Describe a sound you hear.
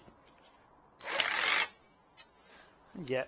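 A power drill whirs briefly at high speed.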